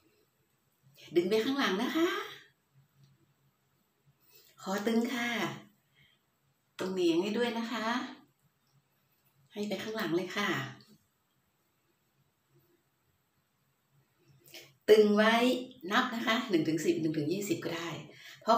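A middle-aged woman speaks calmly and close by, in short bursts with pauses.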